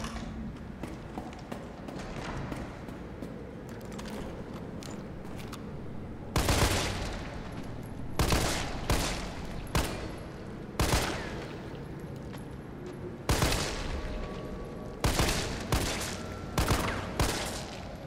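A young woman talks into a headset microphone.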